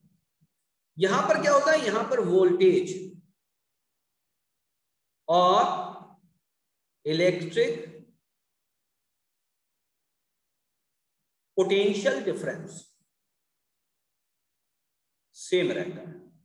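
A man speaks calmly into a close microphone, explaining in bursts with pauses.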